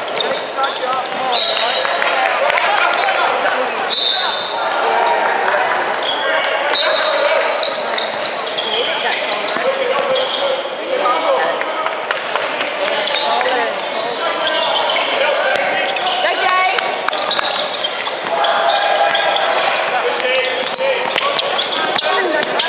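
A crowd of young people talks and shouts throughout a large echoing gym.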